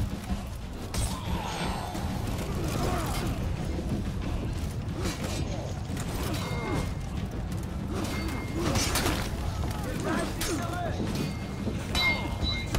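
Steel swords clash and clang in quick bursts.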